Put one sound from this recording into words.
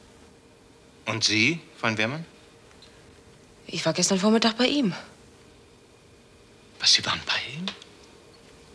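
An older man speaks in a low, serious voice.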